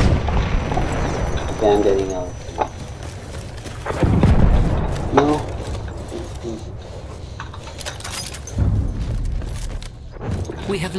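Footsteps crunch quickly over rough ground.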